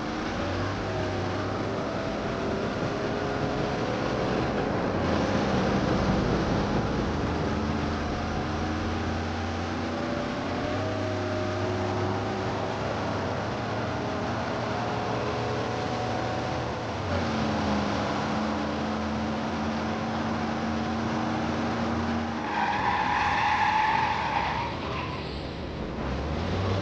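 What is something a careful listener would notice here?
A car engine hums and revs steadily as the car drives.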